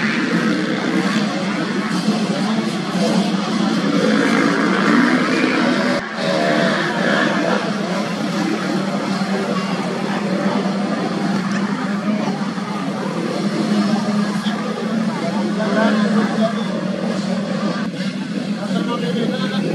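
Dirt bike engines buzz and roar steadily nearby.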